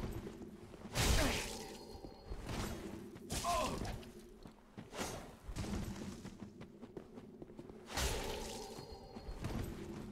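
Sword blows strike and clang in quick bursts.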